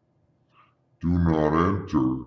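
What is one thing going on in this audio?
A middle-aged man speaks loudly and close to the microphone.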